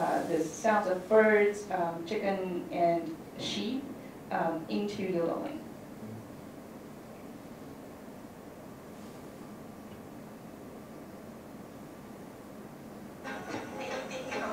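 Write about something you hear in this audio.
A young man speaks calmly through a microphone in a large hall.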